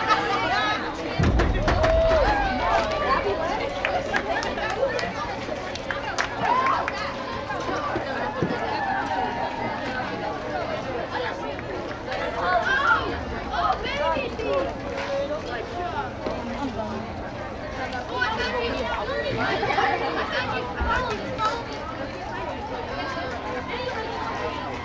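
A group of men and women chatter and call out outdoors, near and far.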